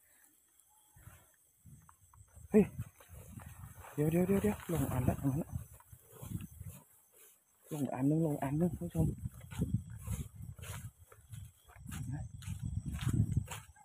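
Tall grass rustles and swishes as someone walks through it.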